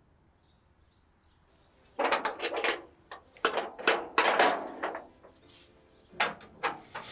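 A metal gate rattles as it is unlocked.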